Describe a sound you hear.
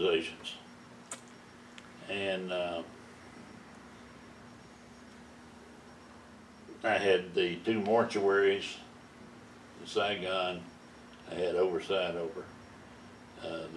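An elderly man speaks calmly and slowly nearby, in short phrases with pauses.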